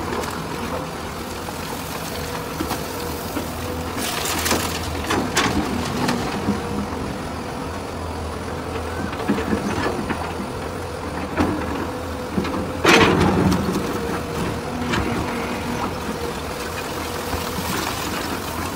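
An excavator engine rumbles steadily.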